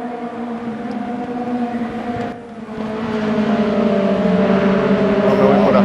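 A racing car engine roars steadily, its pitch shifting as it accelerates.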